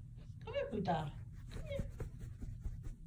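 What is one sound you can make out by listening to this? A kitten meows close by.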